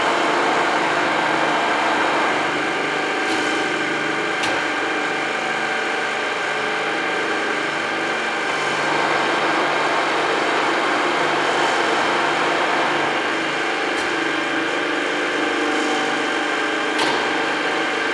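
A milling machine hums as it runs.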